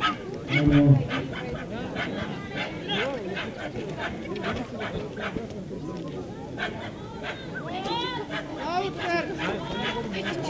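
A crowd chatters outdoors in the background.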